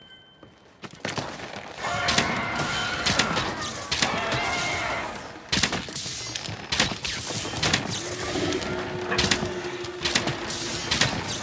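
Heavy weapon blows land with sharp metallic impacts.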